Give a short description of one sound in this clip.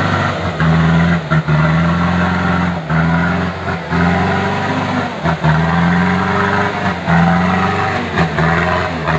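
A truck engine roars and strains, revving up and down.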